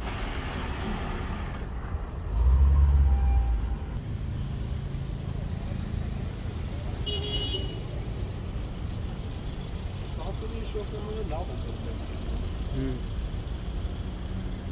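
Traffic hums steadily on a busy street outdoors.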